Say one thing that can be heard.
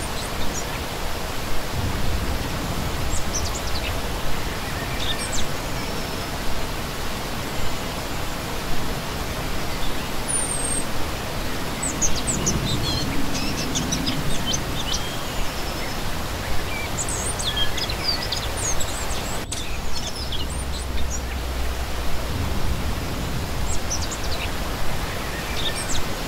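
A shallow stream rushes and splashes steadily over rocks, outdoors.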